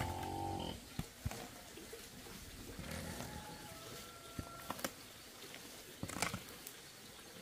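A hoe chops into dry soil with dull thuds.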